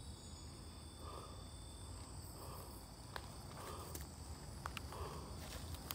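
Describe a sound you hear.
Footsteps crunch through dry leaves on the ground.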